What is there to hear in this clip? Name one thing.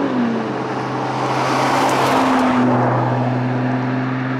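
A sports car accelerates past on an asphalt road.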